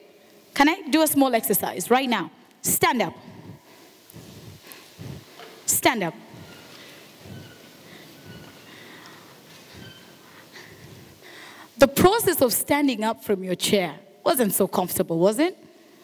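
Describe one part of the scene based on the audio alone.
A woman speaks with animation through a microphone, pausing between bursts.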